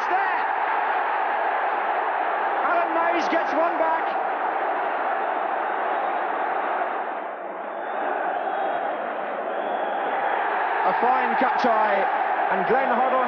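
A large crowd roars and cheers.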